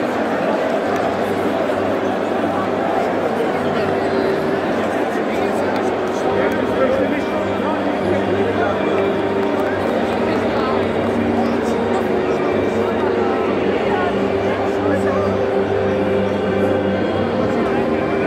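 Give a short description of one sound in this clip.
A large crowd cheers and chants loudly in a big echoing arena.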